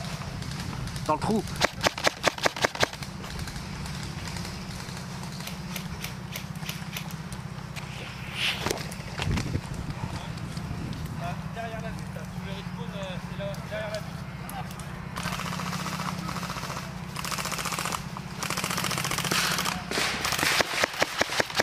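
A gun fires a rapid series of sharp shots close by.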